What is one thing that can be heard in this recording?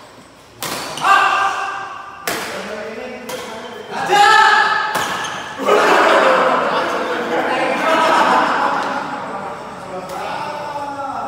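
Men call out loudly to each other across the court.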